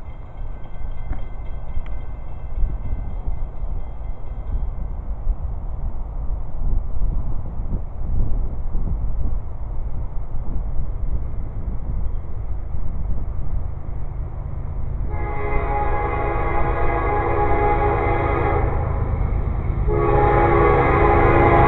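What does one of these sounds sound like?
Wind blusters loudly across the open air.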